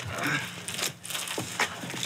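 Several men walk with footsteps on hard ground.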